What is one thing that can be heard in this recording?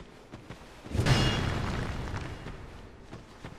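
A heavy sword swings with a loud whoosh.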